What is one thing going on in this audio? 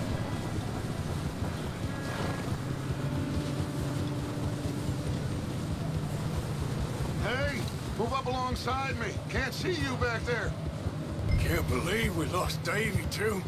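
Horses gallop with heavy, steady hoofbeats on snow.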